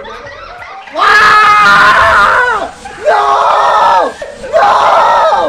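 A young man shouts and laughs loudly into a microphone.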